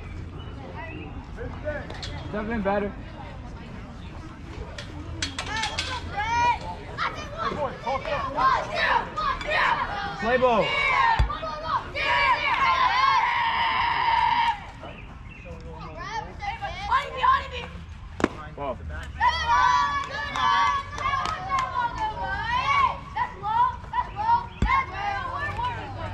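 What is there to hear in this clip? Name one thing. Children shout and cheer excitedly from across an open field.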